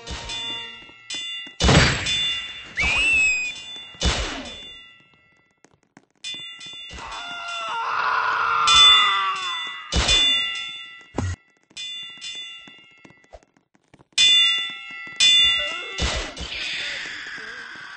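Punches land with sharp, quick thuds, again and again.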